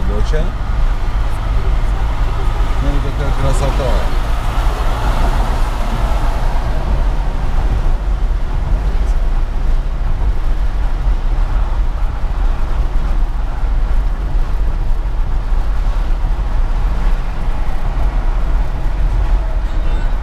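Tyres roll steadily over the road.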